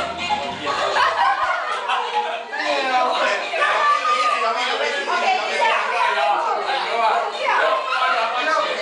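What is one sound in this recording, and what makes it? A group of young men sing loudly together nearby.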